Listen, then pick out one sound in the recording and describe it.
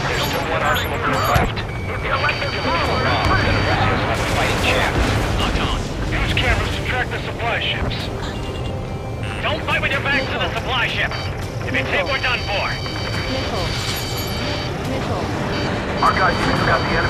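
A jet engine roars steadily throughout.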